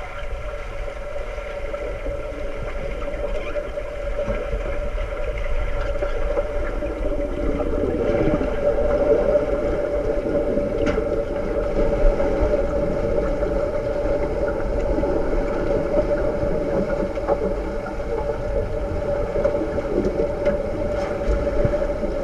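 Underwater, air bubbles from a diver's regulator gurgle and rumble.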